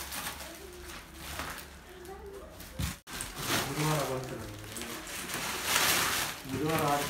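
Plastic wrap crinkles and rustles under hands.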